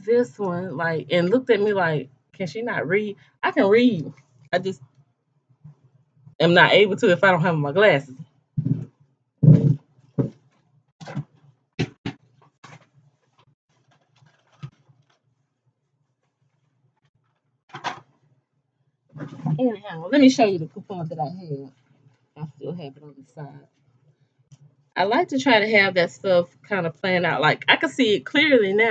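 A middle-aged woman talks with animation close to a microphone.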